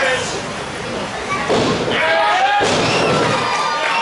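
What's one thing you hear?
A wrestler's body slams onto a ring mat with a heavy thud.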